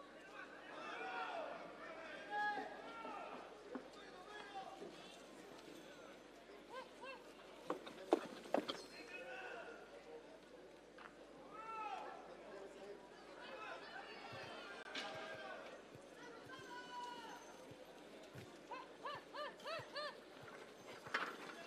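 A crowd shouts and whistles in a large open arena.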